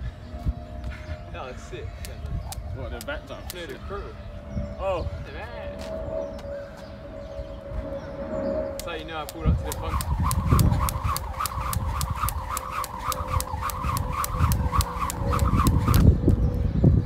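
A skipping rope slaps the ground in a quick, steady rhythm.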